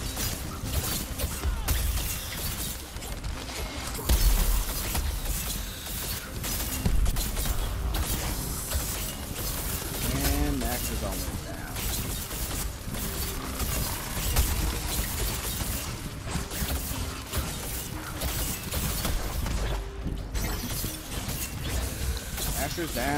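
Blasts and impacts boom with deep thuds throughout.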